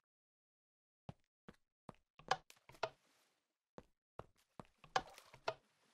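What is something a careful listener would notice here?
Game footsteps tap on hard stone.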